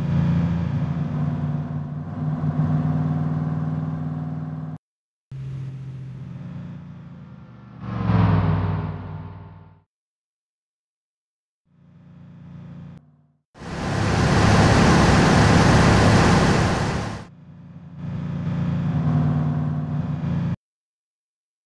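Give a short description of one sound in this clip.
A heavy truck engine drones and rumbles as trucks roll along a road.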